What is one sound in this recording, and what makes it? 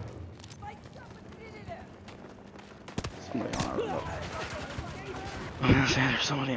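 Gunfire cracks in quick bursts, echoing off hard walls.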